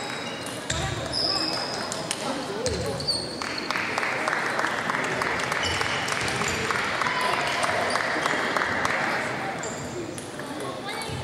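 Table tennis balls click sharply against paddles and tables in a large echoing hall.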